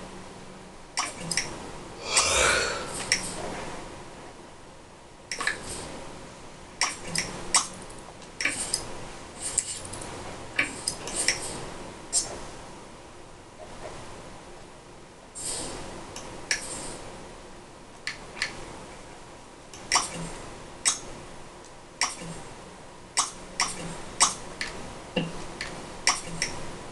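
Short menu clicks and chimes sound from a video game.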